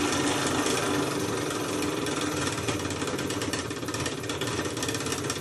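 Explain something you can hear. Small metal parts click and rattle under a hand.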